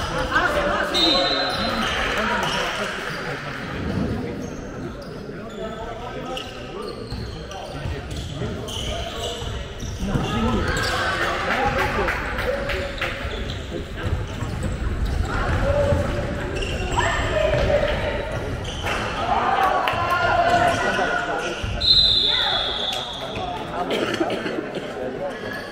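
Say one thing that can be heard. A handball bounces on a sports hall floor, echoing in a large hall.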